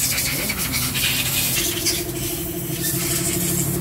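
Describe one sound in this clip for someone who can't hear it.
A hand tool clicks and scrapes against engine metal.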